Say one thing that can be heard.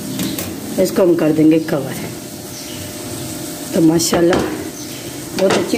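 A wooden spoon stirs a thick stew in a metal pot.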